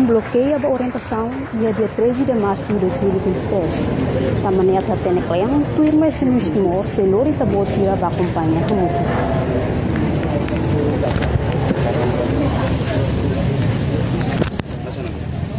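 A young woman speaks steadily, close by.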